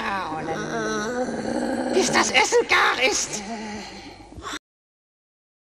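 A man speaks in a gruff, theatrical creature voice close by.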